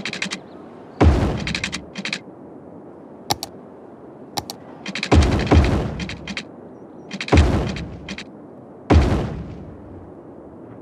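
Short whooshing building sounds play several times.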